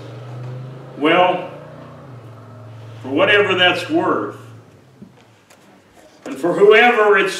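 An elderly man preaches slowly and with emphasis into a microphone.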